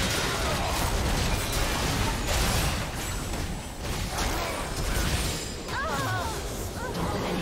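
Spell effects crackle, boom and whoosh during a video game battle.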